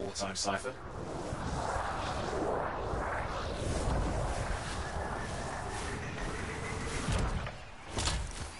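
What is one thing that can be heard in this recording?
Jet thrusters roar and whoosh.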